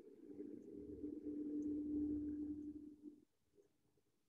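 A woman hums a long, steady note softly through an online call.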